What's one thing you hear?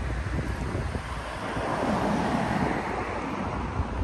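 A car drives by on a nearby street.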